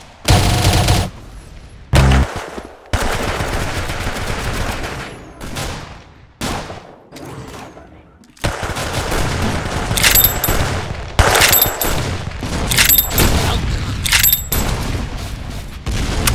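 Rifle shots ring out one at a time, with sharp cracks.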